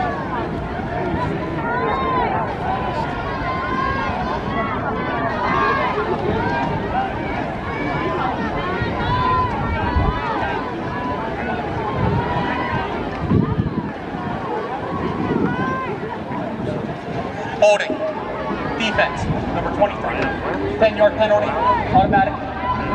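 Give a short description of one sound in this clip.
Many men talk and call out nearby in the open air.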